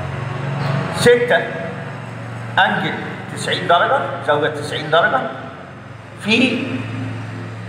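An elderly man speaks calmly, explaining.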